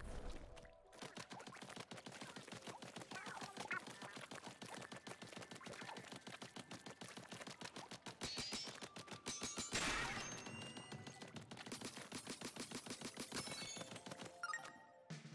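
Rapid squirting shots fire in quick bursts.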